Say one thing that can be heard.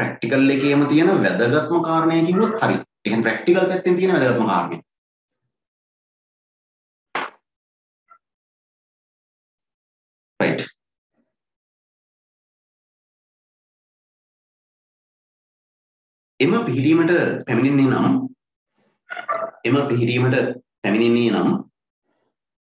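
A man speaks calmly into a close microphone, pausing often.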